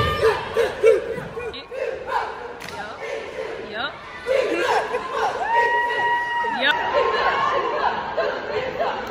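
A group of young women chant and shout loudly in unison in a large echoing hall.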